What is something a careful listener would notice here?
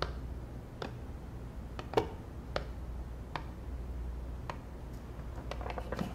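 Footsteps tap on a hard floor.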